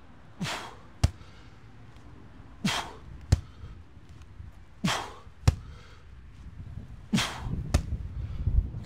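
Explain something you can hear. A heavy sandbag thuds down onto concrete.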